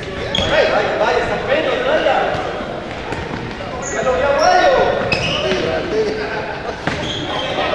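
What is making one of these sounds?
A ball thuds off a player's foot.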